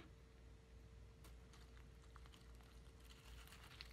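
Milk pours and splashes into a bowl of cereal.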